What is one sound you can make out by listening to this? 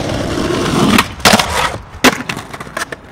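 A skateboard clacks and scrapes sharply against a ledge.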